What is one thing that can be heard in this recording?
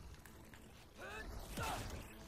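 A wolf-like beast snarls and yelps.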